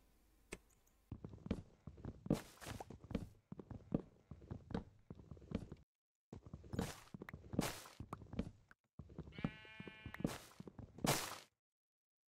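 Wood is chopped with repeated dull knocks.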